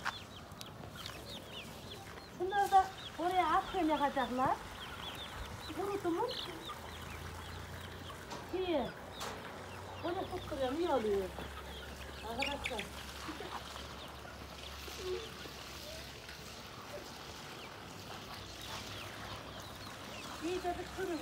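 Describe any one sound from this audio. Chickens cluck softly in a cage.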